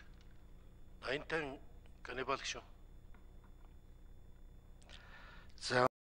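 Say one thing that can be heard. A man speaks calmly through a microphone in short bursts.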